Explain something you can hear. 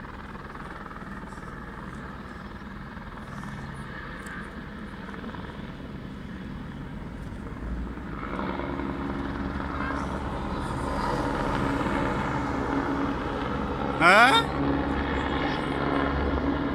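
A helicopter's rotor thumps and its engine whines, growing louder as it approaches.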